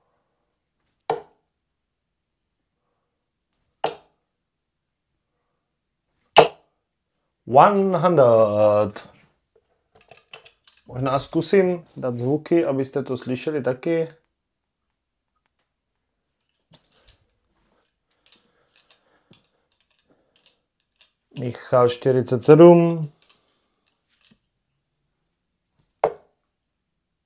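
Darts thud into a dartboard one at a time.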